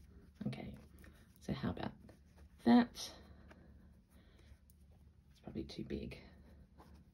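Soft fabric and lace rustle as they are handled.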